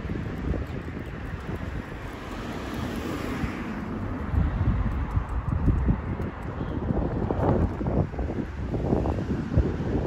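Wind blows into the microphone outdoors.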